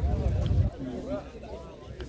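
A football thuds as it is kicked on grass.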